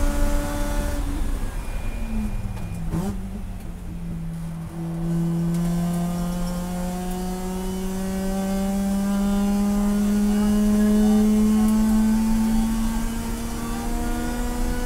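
A race car engine drops in pitch as the driver lifts off and downshifts, then climbs steadily as it speeds up again.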